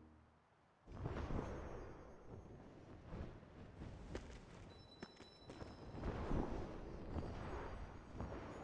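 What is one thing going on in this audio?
Magical sparkling chimes ring out.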